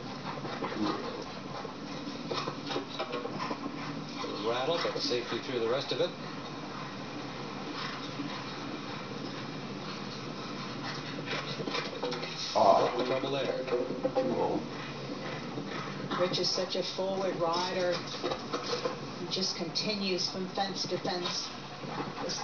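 A television plays the sound of a sports broadcast.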